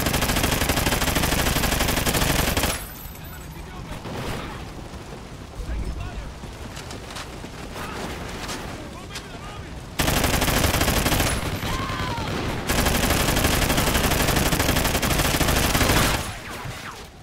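Automatic gunfire rattles loudly in rapid bursts.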